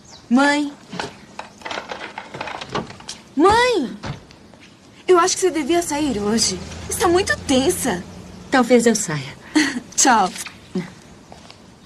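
A woman speaks in a worried, raised voice close by.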